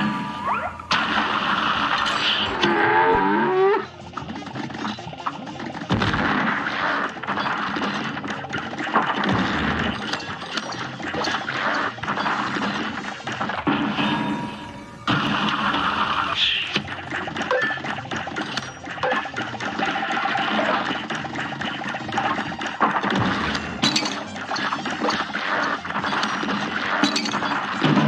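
Cartoon characters fire rapid shots with quick popping sounds.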